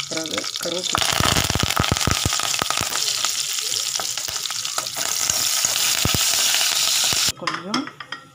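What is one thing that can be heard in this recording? Leaves drop into hot oil and crackle and spit loudly.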